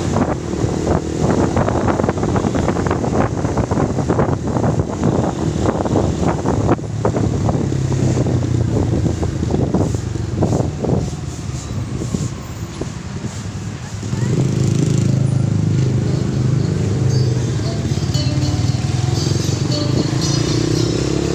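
A minibus engine rumbles steadily close ahead.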